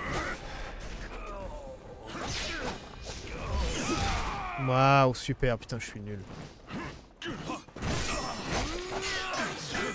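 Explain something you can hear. A man grunts and shouts with effort.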